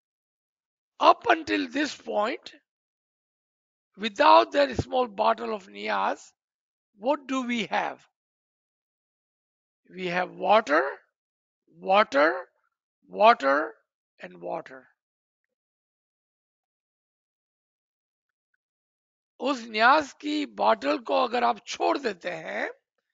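A man speaks calmly through a microphone on an online call, in short phrases with pauses.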